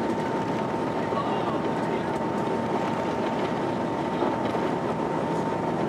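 Heavy rain beats against an airplane window.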